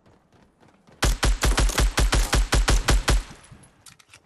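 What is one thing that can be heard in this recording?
A rifle fires in a rapid burst of loud shots.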